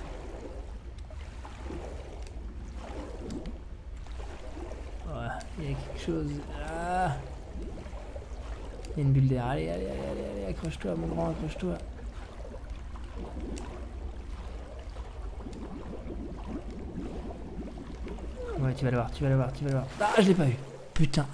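A low, muffled underwater rumble drones steadily.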